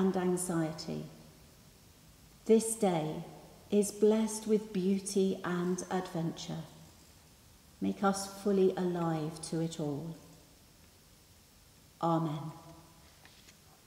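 A woman reads out calmly into a microphone, in a large echoing hall.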